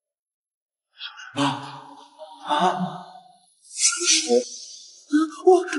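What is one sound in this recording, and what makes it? A young man gasps and cries out in fright, close by.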